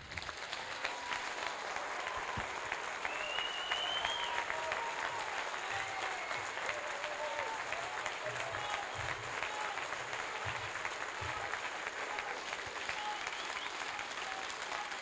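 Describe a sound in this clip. A crowd of men and women cheers and whistles.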